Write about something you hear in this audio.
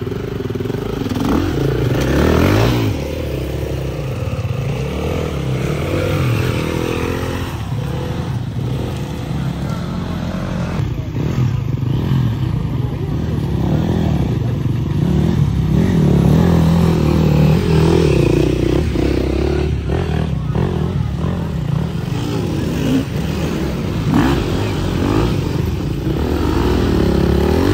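Dirt bike engines rev and roar close by, outdoors.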